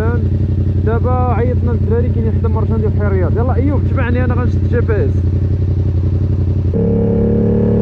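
A motorcycle engine idles with a low rumble.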